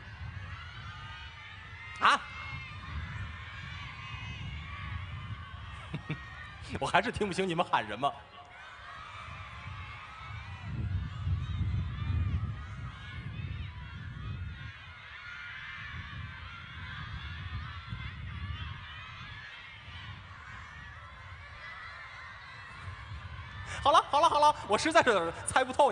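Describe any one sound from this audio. A large crowd cheers and sings along outdoors.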